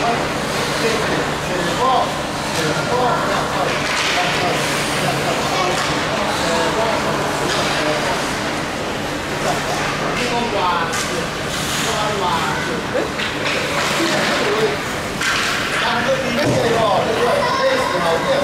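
Hockey sticks clack against the ice and against each other.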